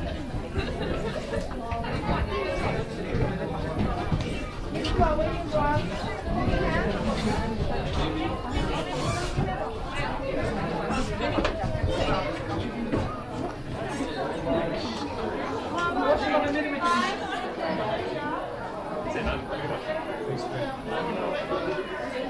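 A crowd of people chatter all around in a busy hall.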